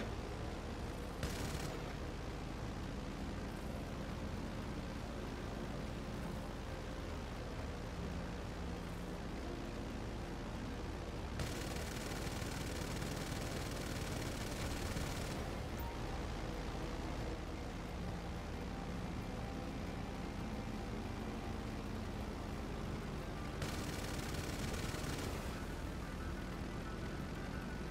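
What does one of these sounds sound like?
Twin propeller engines drone steadily.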